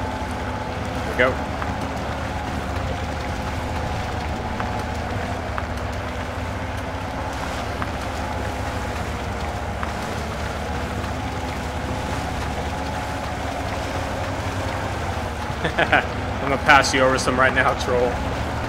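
A truck engine rumbles steadily while the truck drives over rough ground.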